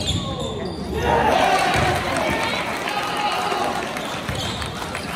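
A crowd cheers and shouts in an echoing gym.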